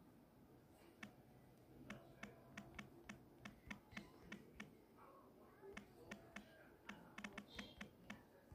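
Phone keyboard keys click in quick, uneven bursts of taps.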